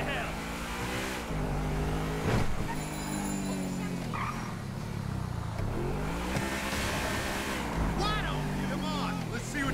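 A sports car engine revs up and down as gears shift.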